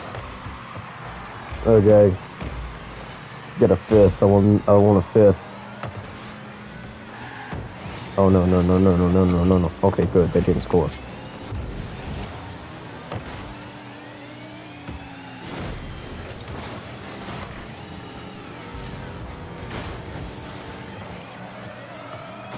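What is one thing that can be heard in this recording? A rocket boost whooshes in bursts.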